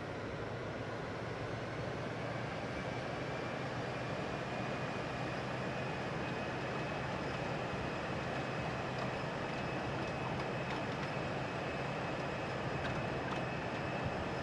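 Jet engines roar steadily as an airliner takes off.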